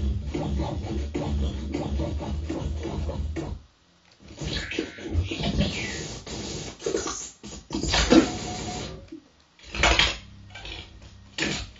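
Electronic sounds buzz, crackle and warble through loudspeakers.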